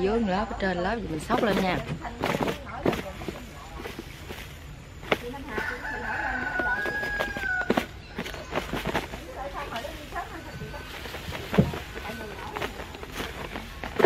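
Rice and vegetables rattle and shift inside a plastic container being shaken.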